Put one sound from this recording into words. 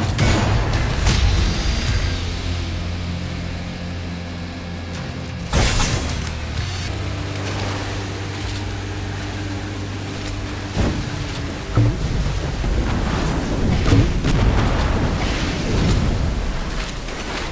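Water splashes and rushes past a speeding boat.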